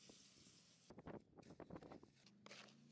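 A hoe scrapes and churns through wet concrete.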